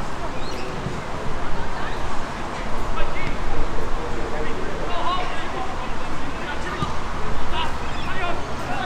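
Wind blows across an open field outdoors.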